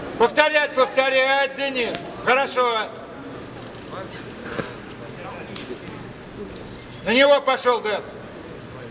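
A man shouts loudly nearby in an echoing hall.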